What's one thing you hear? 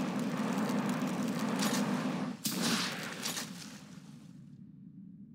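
A flamethrower roars with a rushing blast of fire.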